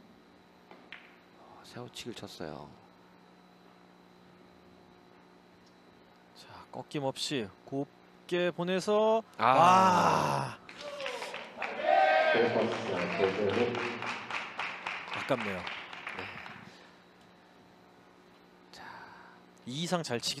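Billiard balls click sharply against each other.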